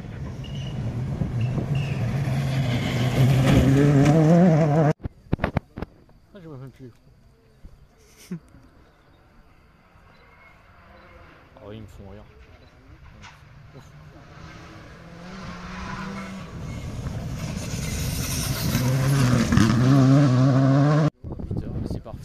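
A rally car engine roars and revs hard as the car speeds past close by.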